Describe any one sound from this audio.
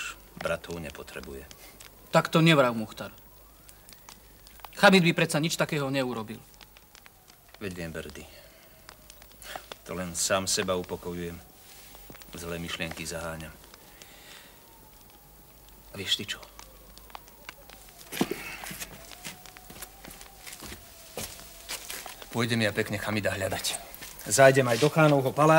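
A second young man answers calmly nearby.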